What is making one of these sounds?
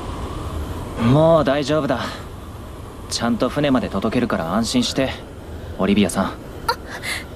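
A young man speaks calmly and reassuringly.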